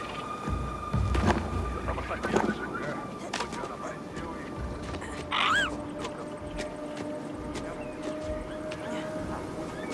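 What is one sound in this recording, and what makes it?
Hands scrape and grip on rock while climbing.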